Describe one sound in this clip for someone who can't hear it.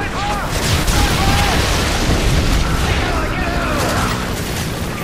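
A helicopter crashes with a loud roaring explosion.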